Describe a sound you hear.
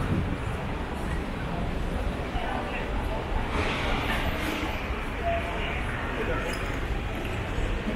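Street traffic and city bustle rumble steadily outdoors.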